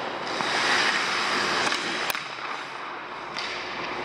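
A puck clacks off a stick.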